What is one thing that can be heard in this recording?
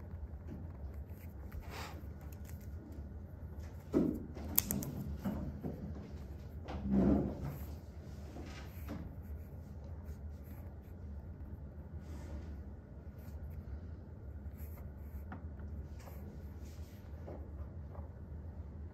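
A pen scratches and taps softly on paper.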